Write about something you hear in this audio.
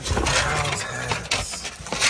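Cardboard boxes rustle and scrape as they are handled.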